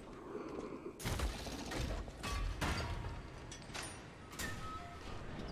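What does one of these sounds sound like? A heavy metal gate rattles and creaks as it is pushed.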